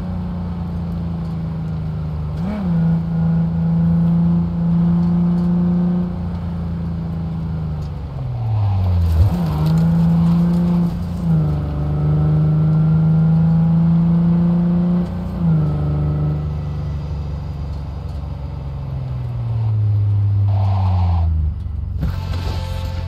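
A car engine revs hard and drops in pitch with each gear change.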